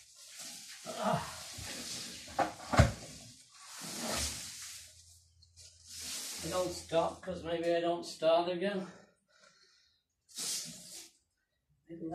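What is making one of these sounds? Leaves rustle as a man handles a large potted plant.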